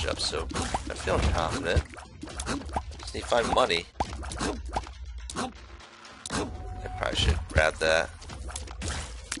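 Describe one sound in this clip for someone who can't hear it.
Cartoonish game sound effects pop and squelch as shots are fired.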